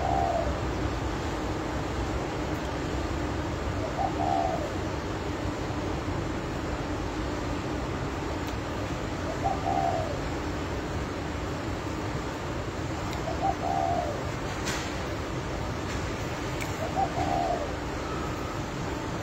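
A woman chews food quietly.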